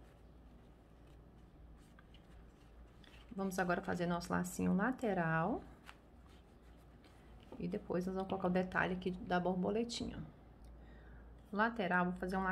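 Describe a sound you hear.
Fabric rustles softly as hands fold a ribbon bow.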